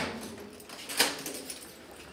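A heavy metal door latch clunks.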